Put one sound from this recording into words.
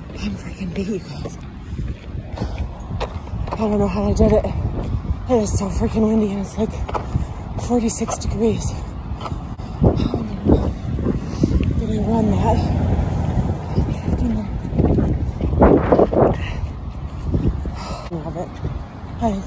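A middle-aged woman talks breathlessly and with emotion, close to a phone microphone.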